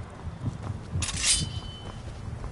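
A sword is drawn with a metallic ring.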